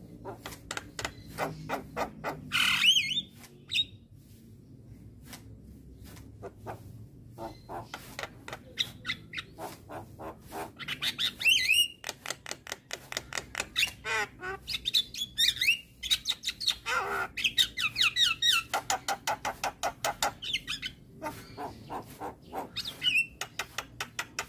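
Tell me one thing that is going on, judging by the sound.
A myna bird clicks and chips in quick rapid bursts.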